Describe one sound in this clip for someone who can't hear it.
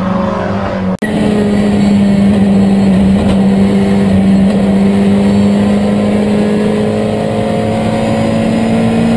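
Another race car engine drones steadily from inside the cabin.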